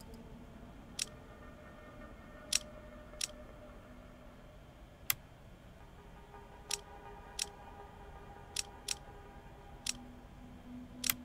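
Short sharp clicks sound now and then.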